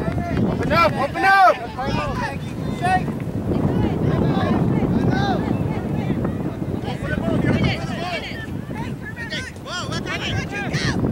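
Spectators shout and cheer from the sidelines outdoors.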